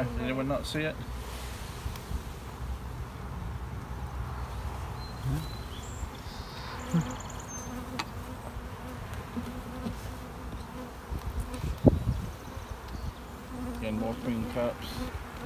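Bees buzz in a low, steady hum.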